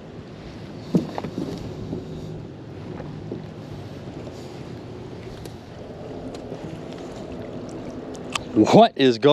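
A rope scrapes and knocks against the side of a metal boat.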